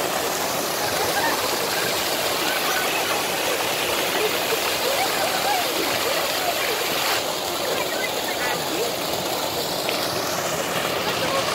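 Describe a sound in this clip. A fountain splashes steadily into a pool.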